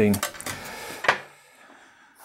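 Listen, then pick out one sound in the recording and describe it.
A metal tool is set down on a hard surface with a click.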